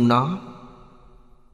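An elderly man speaks briefly and warmly through a microphone, then falls silent.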